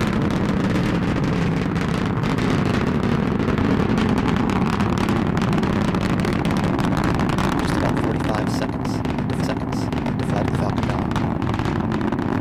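A rocket engine roars and crackles steadily in the distance.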